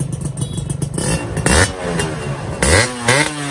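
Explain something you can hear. A motorcycle engine revs up sharply several times.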